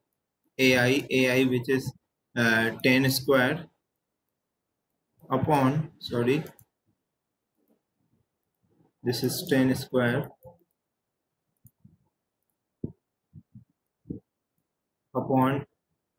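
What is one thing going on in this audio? A man speaks calmly and explains into a close microphone, in short bursts with pauses.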